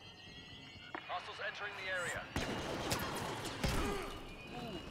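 Rifle blasts fire in rapid bursts.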